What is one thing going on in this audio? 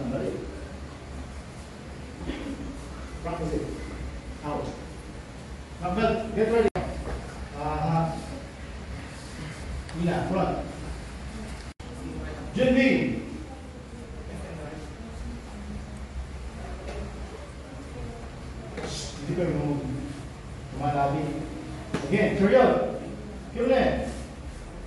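An adult man speaks loudly, giving instructions.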